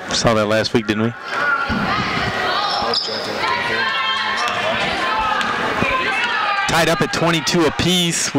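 A crowd of spectators shouts and cheers loudly in an echoing gym.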